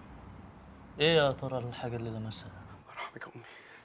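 Another man speaks up sharply.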